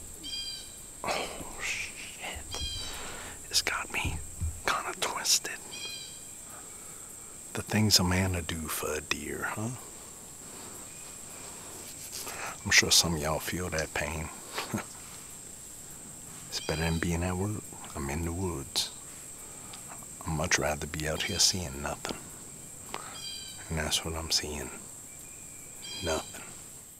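A man speaks quietly and close up, in short phrases with pauses.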